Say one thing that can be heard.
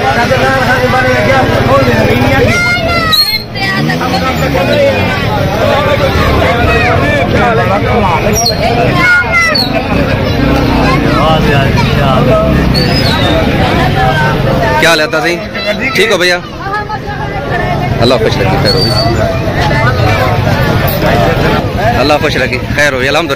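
Several men talk loudly and over one another close by, outdoors.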